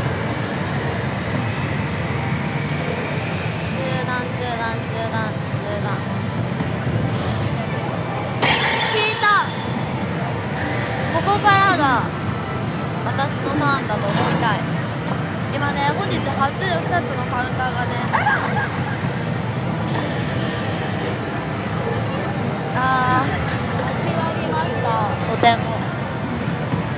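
A slot machine plays jingles and sound effects.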